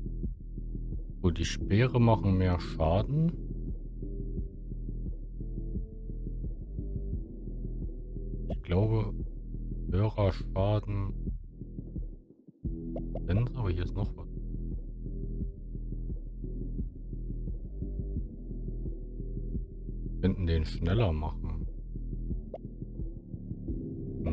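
Soft, low electronic music plays steadily.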